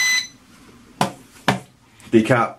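A remote control knocks twice onto a hard surface.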